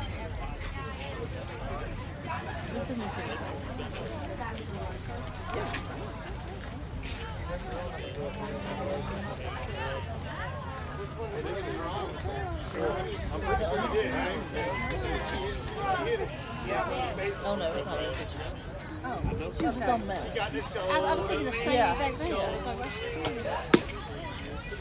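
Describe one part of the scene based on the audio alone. Young women call out and chatter across an open outdoor field.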